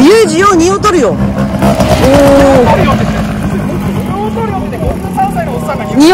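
A scooter engine revs up and down, loud and close.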